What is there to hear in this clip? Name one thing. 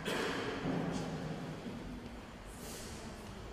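A choir sings a final chord that fades away in a large echoing hall.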